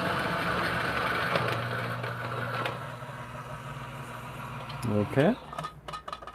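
A coffee grinder whirs steadily, then winds down.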